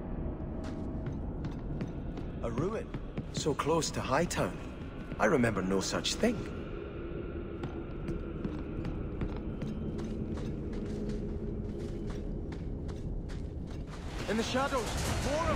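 Armoured footsteps tread on stone.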